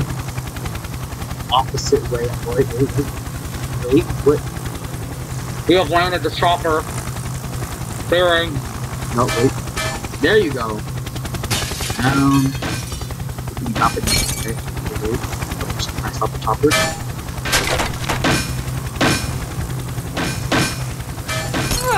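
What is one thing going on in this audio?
A small helicopter engine drones steadily.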